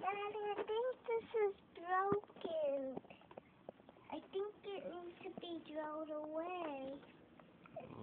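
A young girl sings in a high voice close by.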